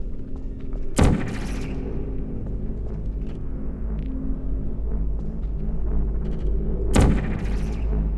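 A portal gun fires with a sharp electronic zap.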